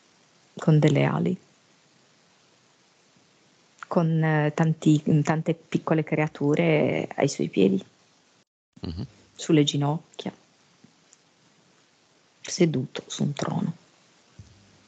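A man speaks calmly in short bursts over an online call.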